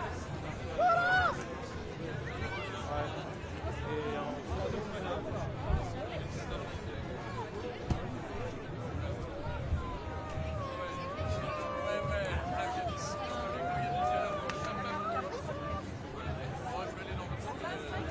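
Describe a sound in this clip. A large crowd of people chatters and calls out outdoors.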